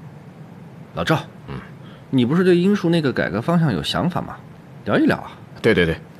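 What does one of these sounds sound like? A middle-aged man speaks with animation, asking questions.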